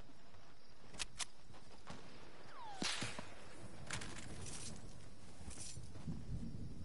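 A gun fires in sharp, separate cracks.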